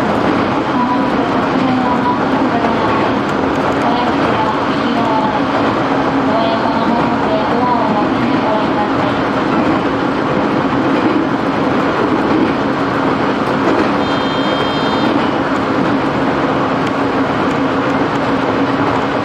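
A train rumbles and rattles steadily along the tracks, heard from inside a carriage.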